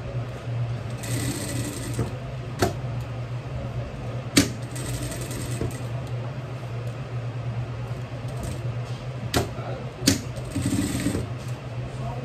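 A sewing machine whirs as it stitches in short bursts.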